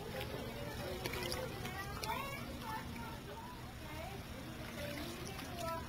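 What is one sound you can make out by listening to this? Water splashes and trickles.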